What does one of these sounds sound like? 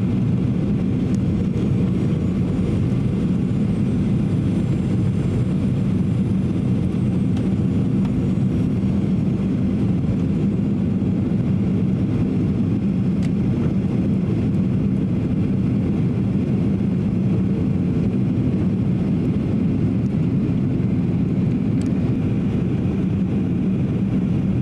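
Engine and air noise roar steadily inside the cabin of a jet airliner on approach.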